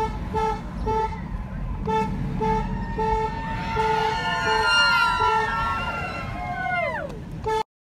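A crowd of men and women cheers and shouts outdoors nearby.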